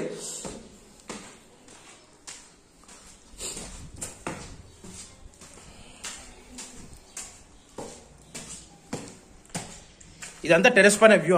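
Footsteps climb concrete stairs.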